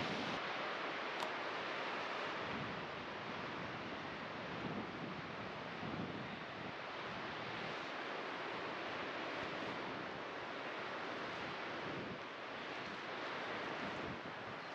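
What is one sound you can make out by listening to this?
Wind blows steadily across open ground outdoors.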